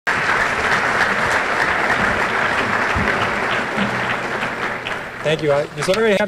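An audience applauds loudly in a large hall.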